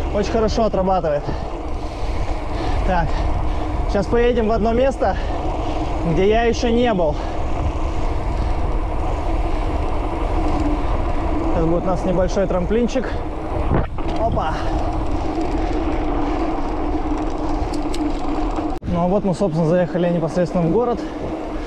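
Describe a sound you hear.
Bicycle tyres roll and rumble over paving stones.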